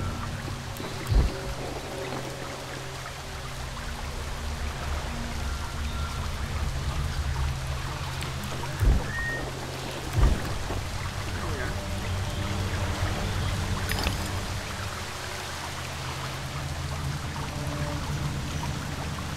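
A waterfall splashes and rushes steadily.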